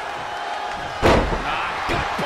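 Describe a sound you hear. A wrestler slams onto the mat with a loud thud.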